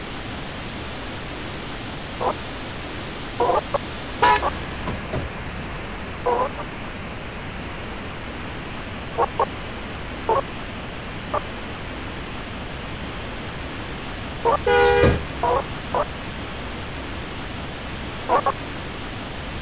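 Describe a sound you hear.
A bus engine hums steadily as the bus drives along a road.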